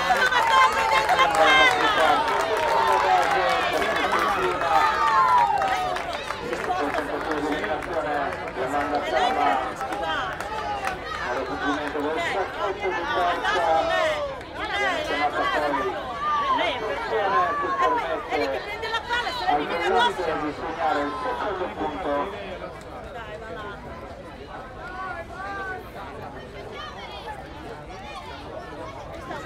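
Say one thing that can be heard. Several young women shout and chant together outdoors, their voices fading down near the end.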